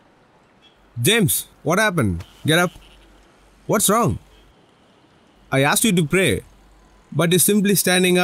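A man speaks firmly and loudly, close by, in short bursts.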